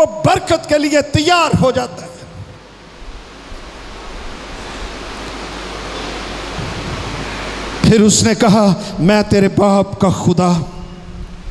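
An elderly man preaches forcefully into a microphone, heard through loudspeakers.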